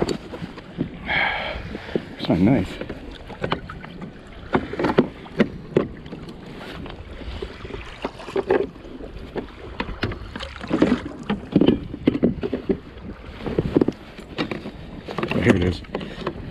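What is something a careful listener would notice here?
Water laps and splashes against the side of a small boat.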